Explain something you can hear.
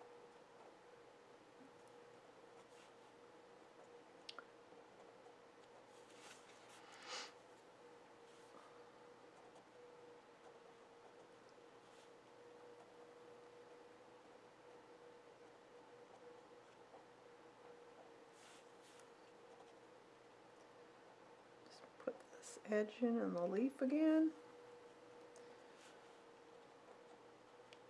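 A fine pen scratches lightly on paper.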